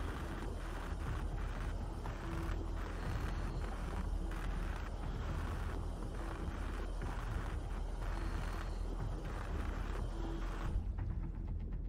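An underwater cutting torch hisses and crackles.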